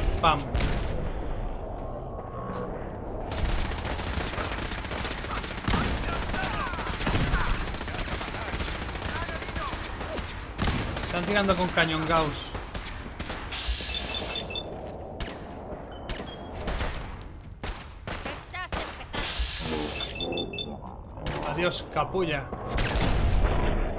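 Gunshots crack repeatedly amid loud battle noise.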